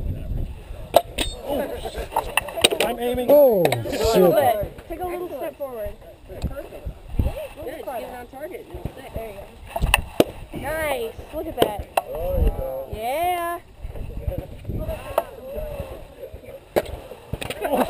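A thrown axe thuds into a wooden target.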